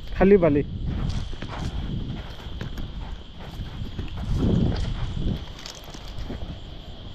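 Footsteps crunch on sand and stones.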